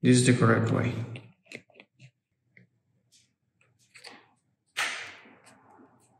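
Small batteries click into place in a plastic remote.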